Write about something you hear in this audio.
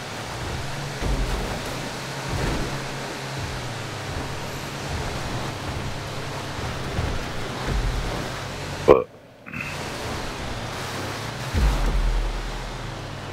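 A van thuds and rattles as it lands over bumps.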